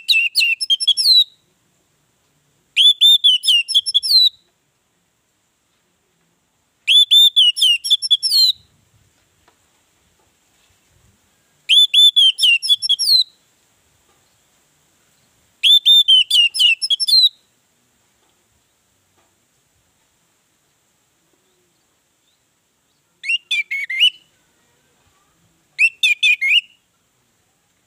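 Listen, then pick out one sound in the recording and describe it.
An orange-headed thrush sings in short bursts of rich whistled phrases.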